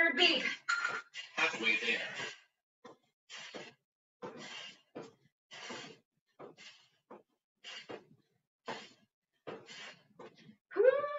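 A woman breathes hard in quick bursts.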